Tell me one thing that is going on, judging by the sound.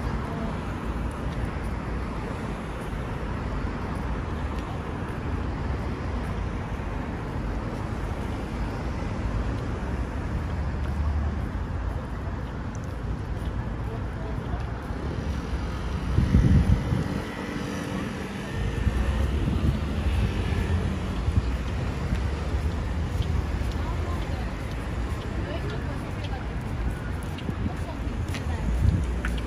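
Traffic hums steadily in the distance outdoors.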